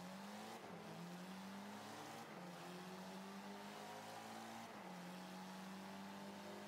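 A racing car engine roars steadily, dropping in pitch with each gear change.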